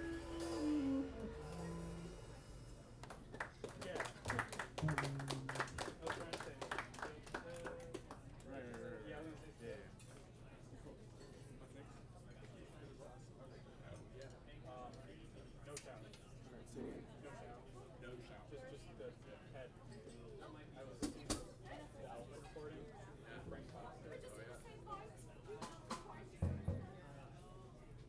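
A saxophone plays a melody.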